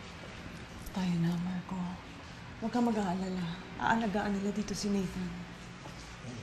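A woman speaks nearby in a pleading, emotional voice.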